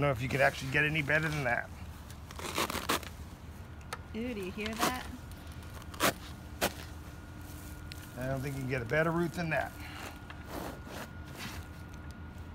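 A plastic pot crinkles and scrapes as a root ball is pulled free.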